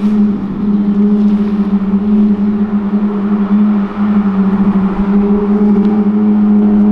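A sports car engine rumbles with a deep, steady drone as it rolls slowly past.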